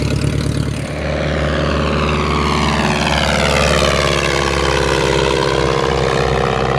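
A propeller plane flies past overhead, its engine sound sweeping in pitch.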